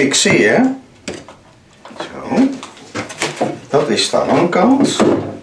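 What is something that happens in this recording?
A wooden frame knocks against a workbench.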